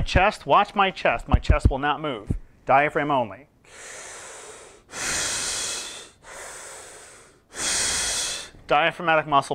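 A man speaks calmly into a microphone nearby.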